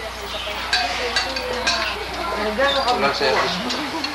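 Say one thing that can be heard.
Spoons and forks clink against plates.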